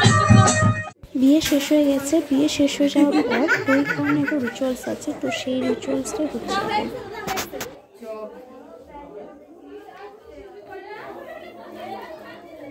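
Women chatter and call out close by in a crowd.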